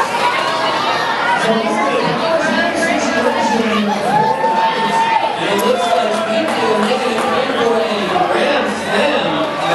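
A large crowd chatters and cheers in an echoing hall.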